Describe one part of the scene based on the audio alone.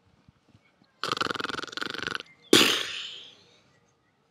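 A middle-aged man yawns loudly.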